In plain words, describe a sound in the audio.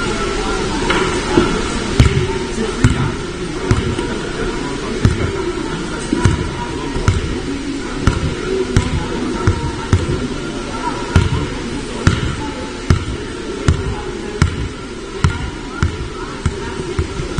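A basketball bounces repeatedly on a wooden floor.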